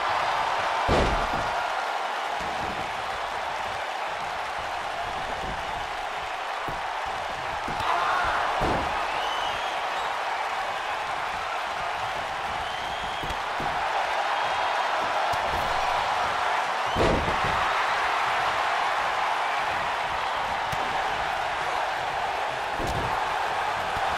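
Bodies land on a wrestling ring mat with heavy thuds.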